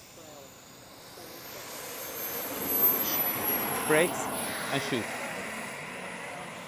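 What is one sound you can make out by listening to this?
A model jet engine whines loudly as the jet rolls past.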